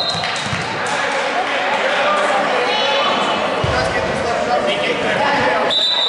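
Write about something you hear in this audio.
Sneakers squeak sharply on the gym floor.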